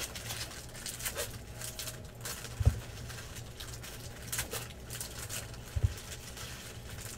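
Plastic card sleeves and wrappers crinkle and rustle in someone's hands.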